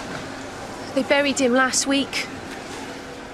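A second woman speaks with concern, close by.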